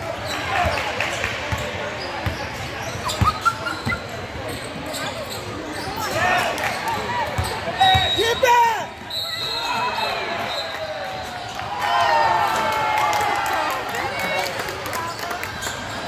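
A crowd of young spectators chatters and cheers loudly nearby.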